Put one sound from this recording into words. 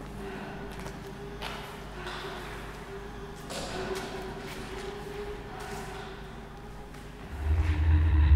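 A man sings loudly into a microphone through a small amplifier.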